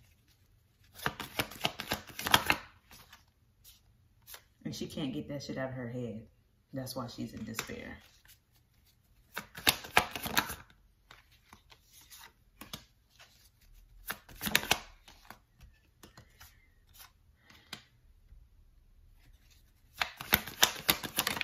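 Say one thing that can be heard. Cards are shuffled with a crisp riffling close by.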